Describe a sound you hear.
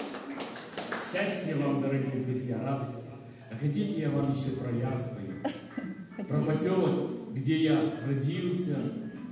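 An elderly man sings through a microphone and loudspeaker.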